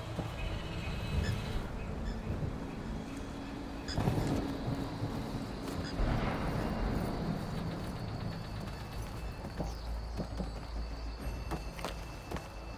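Footsteps patter on grass and stone.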